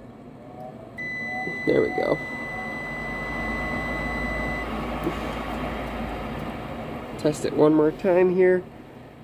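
A furnace fan motor starts up and hums steadily.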